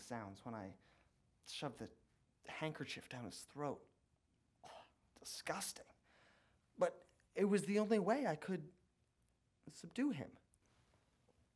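A young man speaks close by in a tearful, strained voice.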